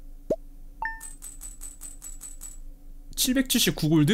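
Short coin-like chimes tick up quickly.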